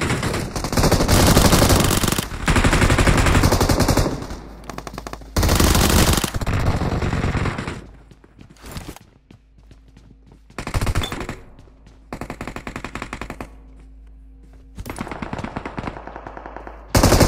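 Footsteps run quickly across hard floors and up wooden stairs.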